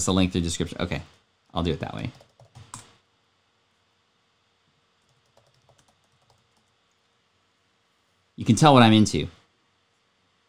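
A man talks calmly and close into a microphone, in short bursts.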